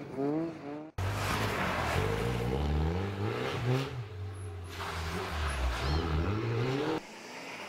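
A rally car engine roars and revs as the car accelerates away.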